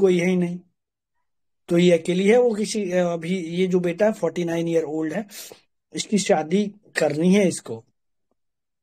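A middle-aged man talks with animation close to a phone microphone.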